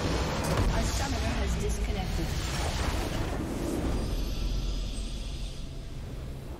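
A structure explodes with a deep, rumbling blast.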